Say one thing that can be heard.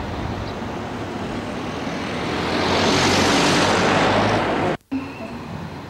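Traffic rushes past outdoors, swelling and fading.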